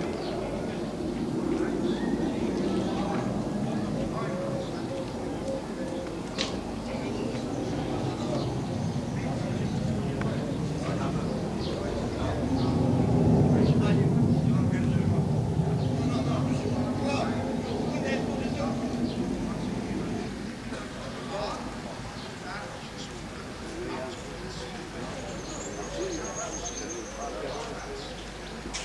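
A group of adults chants together indoors, with echo.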